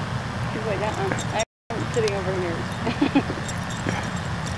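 A young woman talks softly to a dog nearby.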